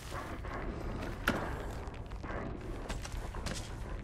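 A cooler lid creaks open.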